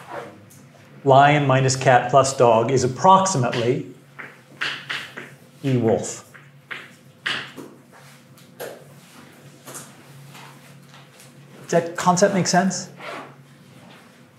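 A middle-aged man lectures calmly in a room with a slight echo.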